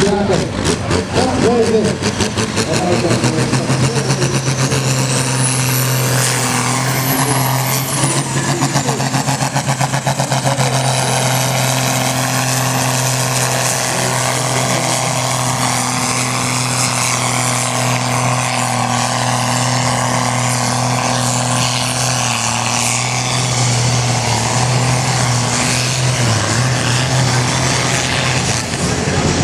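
A tractor engine roars loudly and steadily under heavy strain.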